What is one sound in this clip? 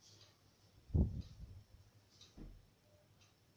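Fabric thumps softly onto a bed.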